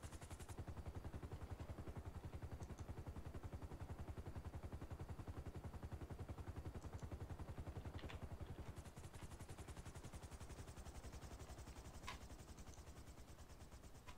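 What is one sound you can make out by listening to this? A helicopter rotor chops steadily close by.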